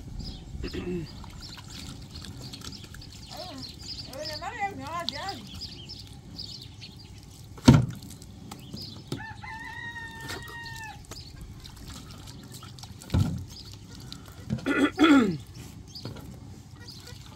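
Water pours from a jug and splashes onto the ground.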